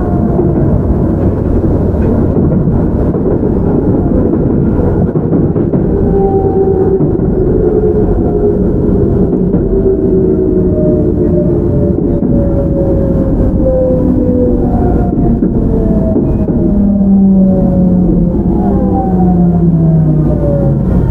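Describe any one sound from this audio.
A train rumbles heavily along the tracks close by.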